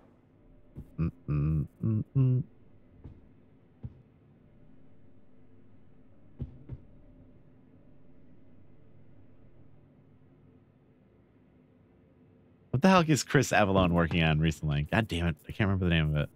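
Footsteps thud on a hard floor along a corridor.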